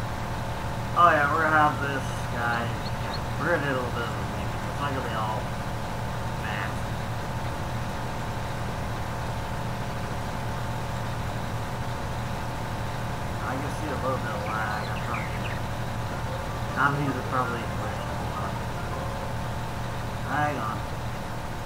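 A man talks through a headset microphone in short, calm bursts.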